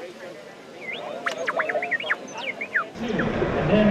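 A small robot beeps and whistles in quick rising and falling chirps.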